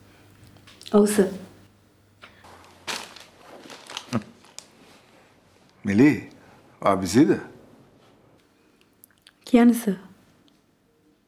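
A woman speaks quietly into a phone.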